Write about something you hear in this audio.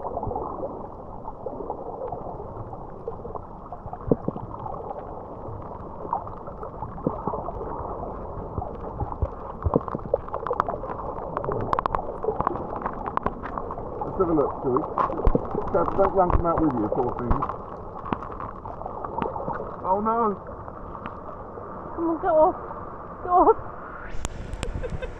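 Shallow seawater churns and bubbles, heard muffled from underwater.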